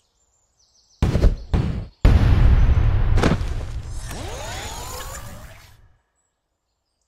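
A loud game jingle and whoosh play as a level begins.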